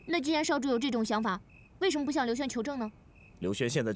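A young woman speaks calmly and questioningly, close by.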